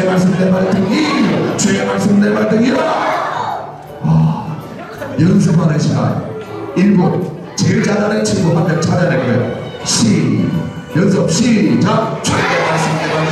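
A man speaks energetically through a microphone in a large echoing hall.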